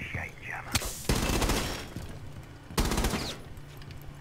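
A rifle fires short bursts of gunshots at close range.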